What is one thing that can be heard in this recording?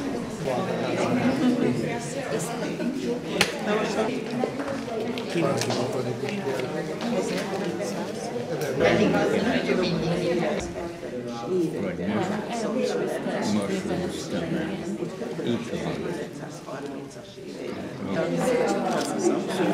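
Several adults chat and laugh close by in a room with some echo.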